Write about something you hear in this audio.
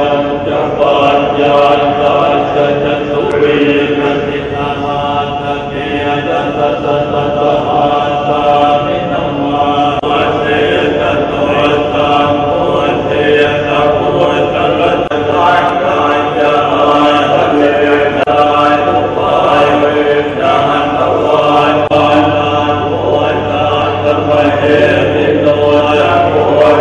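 A group of men chant together in a low, steady drone.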